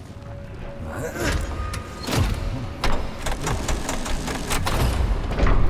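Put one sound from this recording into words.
Metal clanks and thuds against a heavy door.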